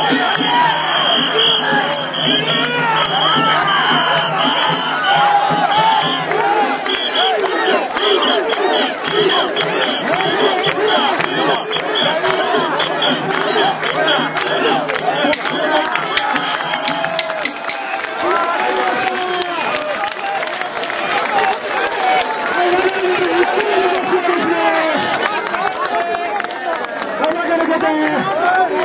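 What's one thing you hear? A large crowd of men chants and shouts loudly nearby.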